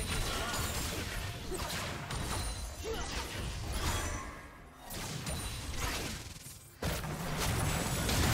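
Spell effects whoosh and burst in a video game fight.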